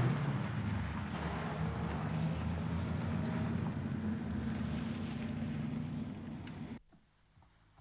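A car engine runs with a low rumble.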